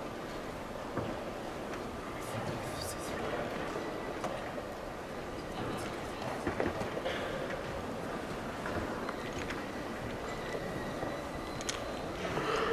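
Chess pieces tap softly on a wooden board.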